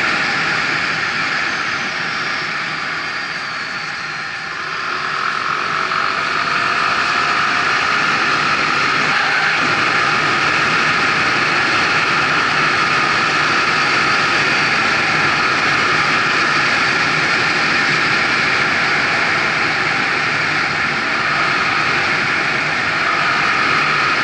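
Wind rushes loudly past a fast-moving vehicle.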